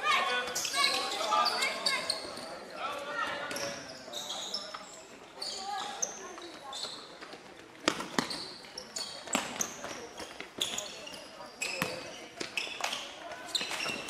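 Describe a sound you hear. A ball thuds as it is caught and passed.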